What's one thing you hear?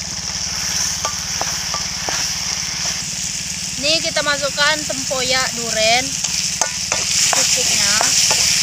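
A metal spatula scrapes and knocks against a pan.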